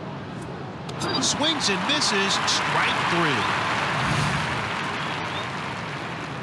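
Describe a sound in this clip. A stadium crowd cheers loudly, then fades.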